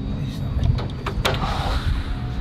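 A metal door handle rattles.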